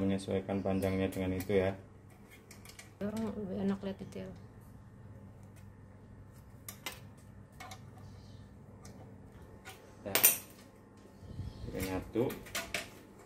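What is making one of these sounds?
Metal parts click and clink as a bracket is adjusted by hand.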